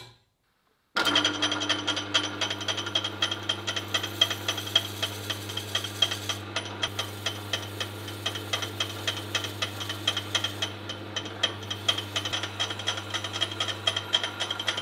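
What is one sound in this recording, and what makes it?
A drill press motor whirs steadily.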